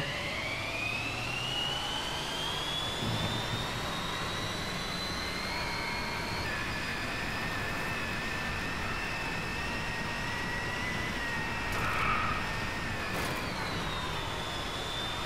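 A racing car engine whines loudly, rising in pitch as it speeds up.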